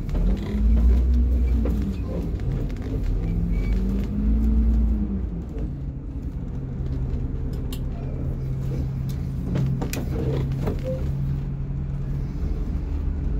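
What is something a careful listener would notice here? A large vehicle's engine rumbles from inside the cabin, rising and falling in pitch before settling into a steady hum.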